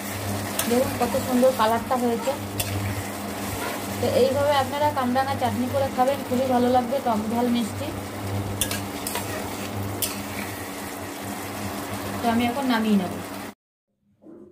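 A spatula scrapes and stirs in a metal pan.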